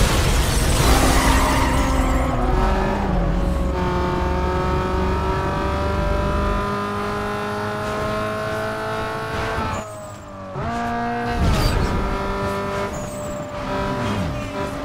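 A car engine roars and revs up through the gears.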